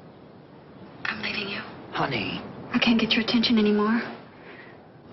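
A woman speaks softly over a phone.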